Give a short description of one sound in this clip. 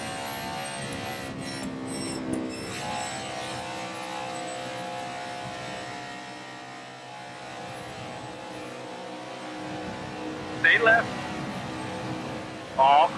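A V8 stock car engine roars at high revs.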